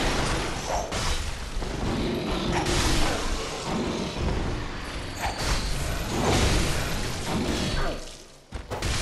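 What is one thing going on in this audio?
A sword slashes and strikes a monster.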